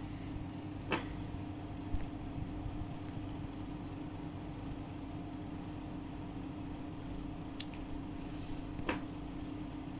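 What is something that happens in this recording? A plastic cap clicks onto a marker.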